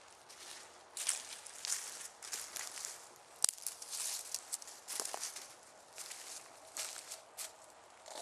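Footsteps crunch on dry leaves close by.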